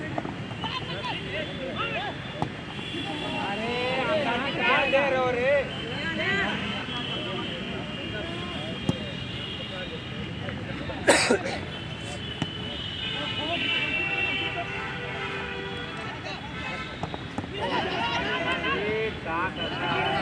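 Young men shout to each other outdoors across an open field.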